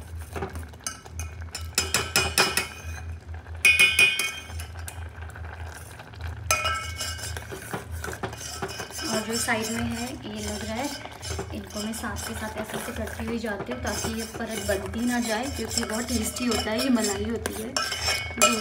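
Thick liquid sloshes as a spoon stirs it.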